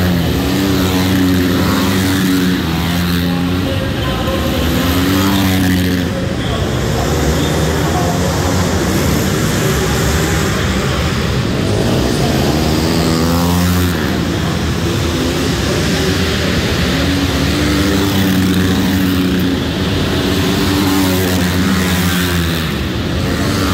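Dirt bike engines whine and rev loudly as they race around, echoing in a large hall.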